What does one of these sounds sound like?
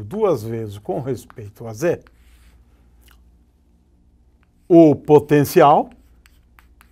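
A man speaks calmly and clearly through a lapel microphone, in short bursts.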